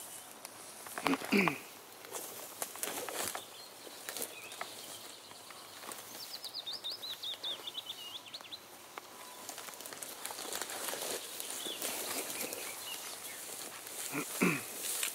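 A man speaks briefly nearby outdoors.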